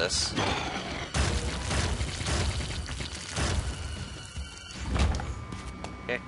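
A fleshy creature squelches and splatters wetly as it is hit.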